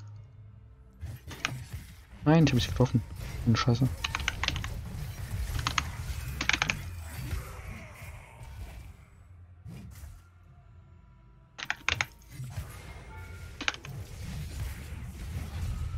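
Sharp hits and impacts sound in quick bursts.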